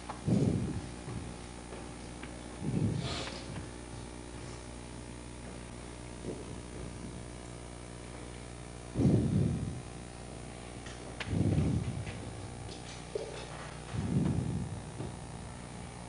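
A man speaks in short phrases through a microphone in a large echoing room.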